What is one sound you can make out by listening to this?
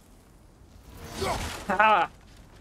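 A wooden crate smashes apart.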